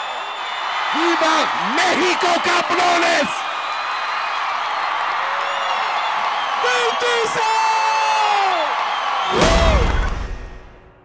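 A large crowd cheers and whistles in a big echoing hall.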